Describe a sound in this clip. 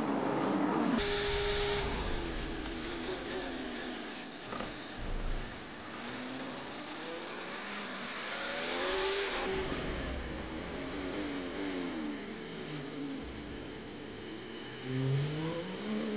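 A racing car engine roars up close, rising and falling in pitch through gear changes.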